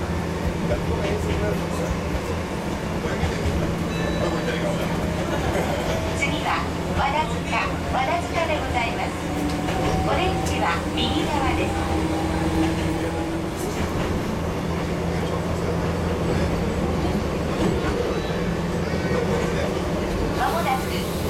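A train hums and rumbles steadily along the tracks.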